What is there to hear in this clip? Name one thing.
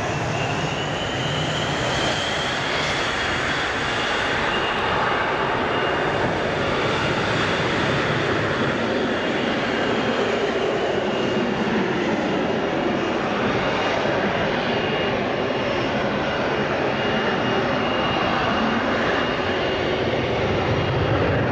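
A high jet engine whine rises and falls.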